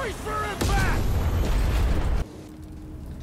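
A heavy crash rumbles loudly, then cuts off.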